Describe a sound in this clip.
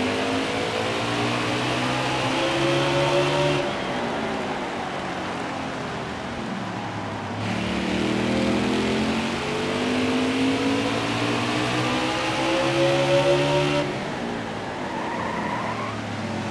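A race car engine roars at high revs, rising and falling in pitch.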